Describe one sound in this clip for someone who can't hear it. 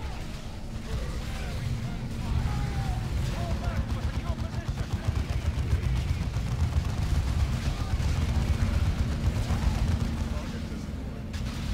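Guns fire and explosions rumble in a battle.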